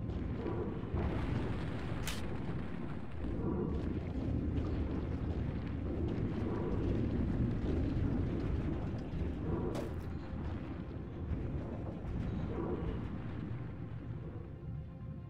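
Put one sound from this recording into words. A deep underwater rumble drones steadily, muffled as if through thick glass.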